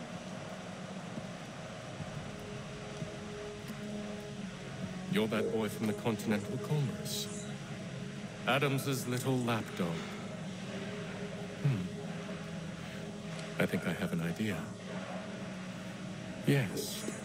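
A young man speaks casually into a microphone.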